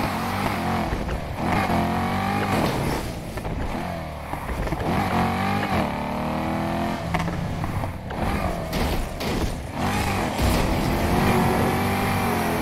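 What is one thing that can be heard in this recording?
A sports car engine revs hard, rising and falling as gears shift.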